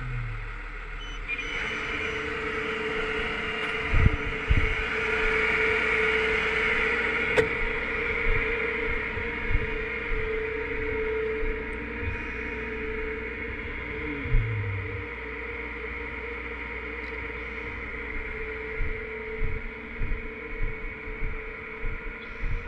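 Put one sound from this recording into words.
A large truck engine idles with a steady rumble.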